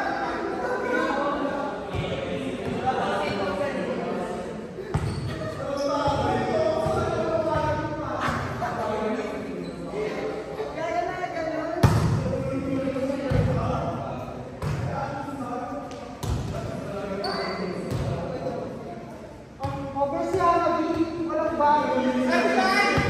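Young men call out and talk to each other across an echoing hall.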